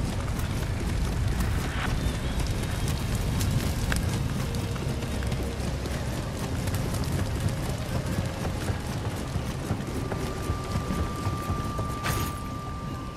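Footsteps run over hard ground and wooden planks.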